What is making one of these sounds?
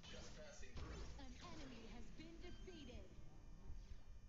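Sword strikes and spell effects whoosh and clang in a fight.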